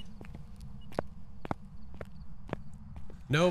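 Footsteps tap on a hard floor at an even pace.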